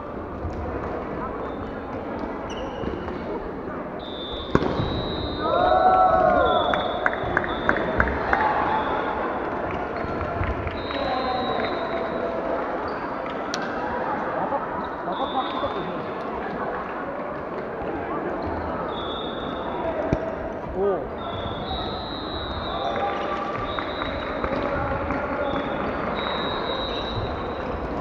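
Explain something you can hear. Basketball shoes squeak sharply on a wooden court in a large echoing hall.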